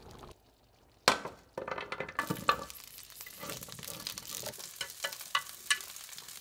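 Chopsticks tap against a pan.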